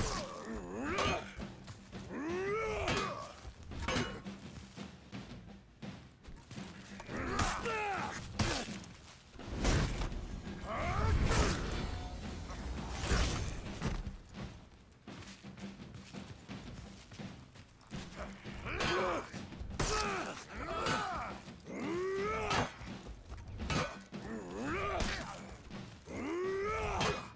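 Heavy weapons clash and strike in a close fight.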